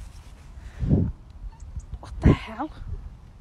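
A pony snorts close by.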